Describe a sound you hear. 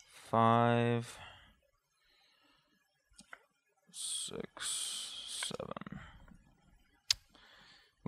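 Playing cards riffle and flick softly in hands.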